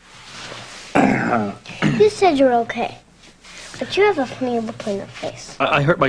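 A young girl speaks softly and earnestly up close.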